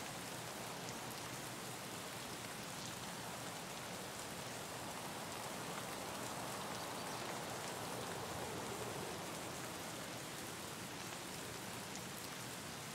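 Wind rustles steadily through trees outdoors.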